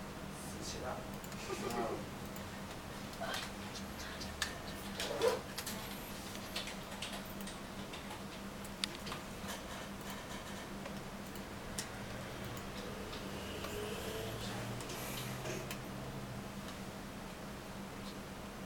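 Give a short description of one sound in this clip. A small screwdriver clicks and scrapes against metal parts.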